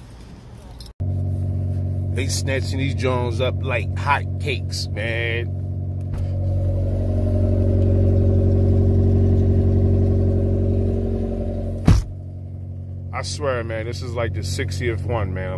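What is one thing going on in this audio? A car engine idles with a steady low hum, close by.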